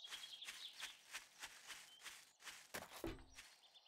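Footsteps crunch at a steady pace on gravel.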